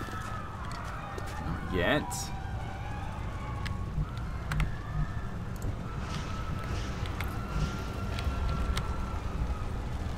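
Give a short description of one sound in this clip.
Fires crackle and roar steadily.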